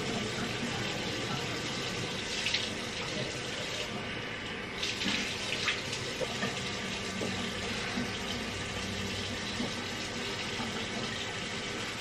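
Water splashes as a young woman rinses her face.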